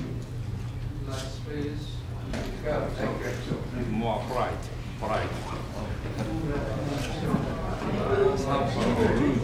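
Another man answers in a friendly voice, close by.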